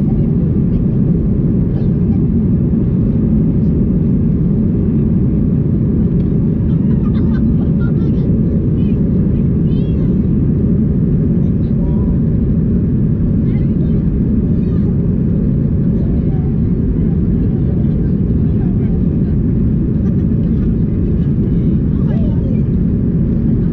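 Jet engines roar steadily inside an airplane cabin in flight.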